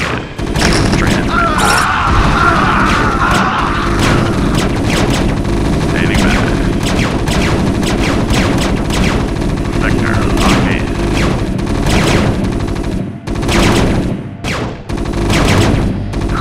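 Rapid gunfire rattles in a battle.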